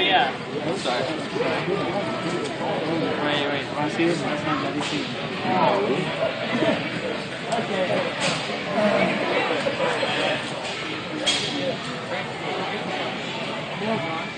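A crowd of men and women chatters all around in an echoing hall.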